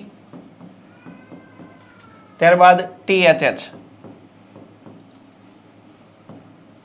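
A marker taps and squeaks on a board.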